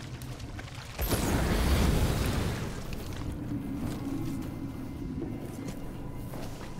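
A flamethrower roars in a burst of fire.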